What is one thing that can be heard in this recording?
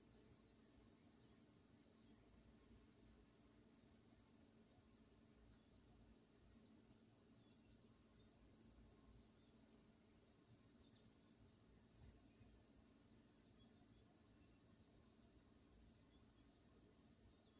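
An outdoor air conditioning unit hums steadily with a low drone.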